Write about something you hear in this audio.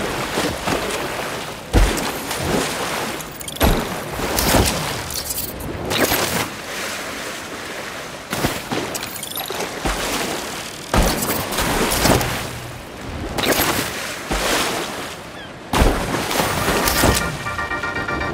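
Waves churn and rush steadily.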